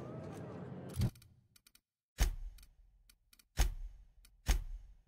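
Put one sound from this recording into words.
Sharp clicks sound several times.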